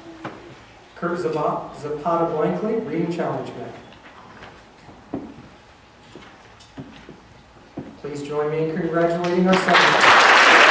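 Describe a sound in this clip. A man speaks into a microphone in a large echoing hall.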